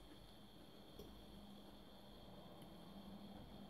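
A fork clinks softly against a plate.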